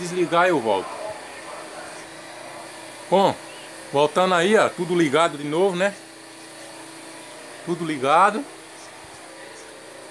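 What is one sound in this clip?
A power inverter's cooling fan hums steadily.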